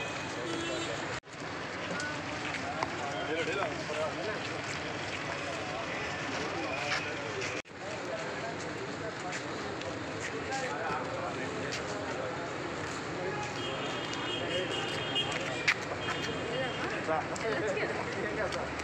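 A crowd of men talk and shout over one another close by.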